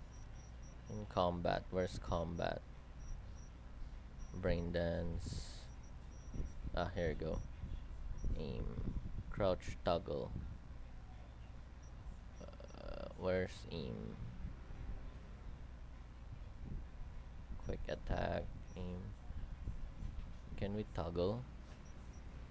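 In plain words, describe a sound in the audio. A young man talks calmly and close to a microphone, in short bursts.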